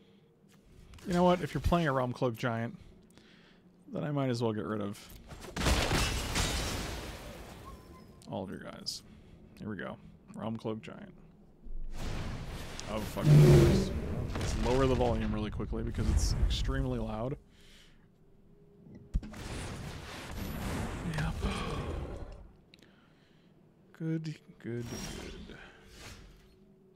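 A middle-aged man talks with animation into a close microphone.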